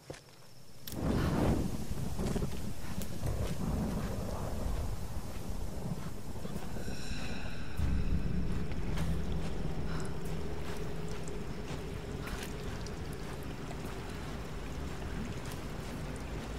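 A torch flame crackles and roars steadily.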